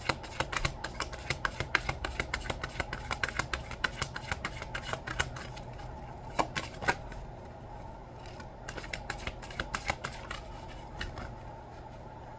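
Cards riffle and flick quickly as they are shuffled close by.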